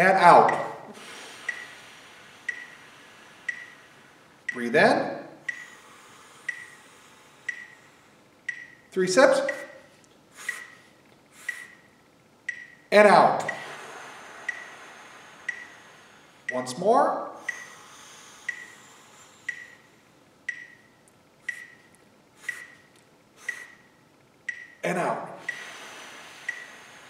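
A man sings short sliding vocal glides close by, each sweeping down from high to low pitch.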